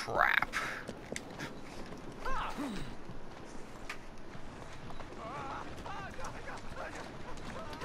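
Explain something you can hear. Horse hooves clop on stone.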